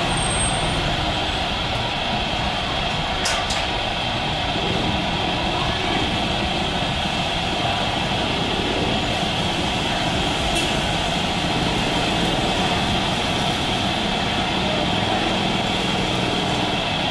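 A jet airliner's engines roar steadily as it taxis past, close by.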